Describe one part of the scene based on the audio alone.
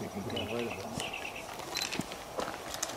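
A small bird chirps in the trees.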